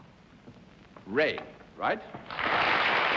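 A man announces loudly over a microphone.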